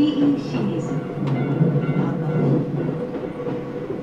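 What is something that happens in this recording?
A level crossing bell rings and fades behind.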